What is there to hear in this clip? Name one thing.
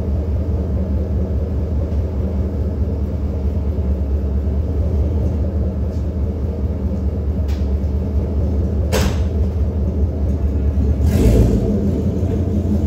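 A truck engine idles nearby with a low, steady rumble.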